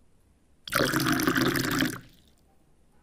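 Liquid pours into a small pot.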